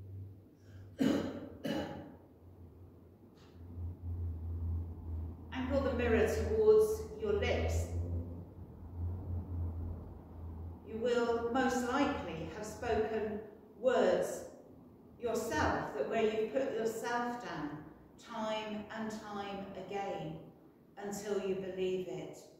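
A young woman speaks calmly through a microphone, in an echoing room.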